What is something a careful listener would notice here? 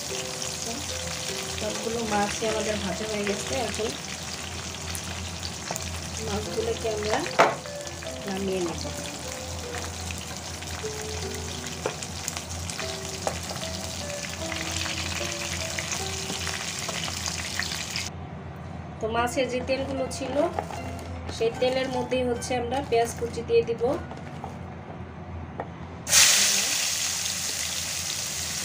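Oil sizzles and crackles in a hot frying pan.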